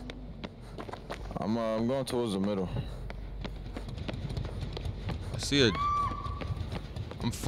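Quick footsteps run across a hard floor.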